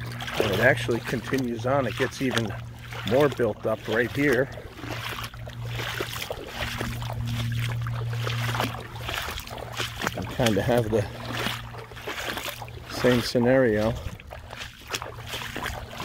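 Shallow water ripples and laps gently.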